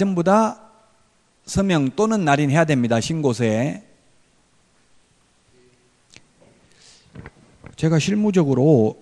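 A middle-aged man speaks calmly into a microphone, heard through a loudspeaker.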